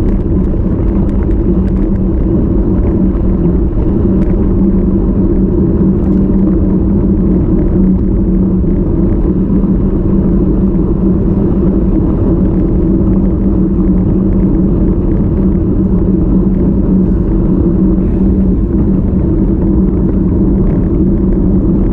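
Wind buffets loudly and steadily.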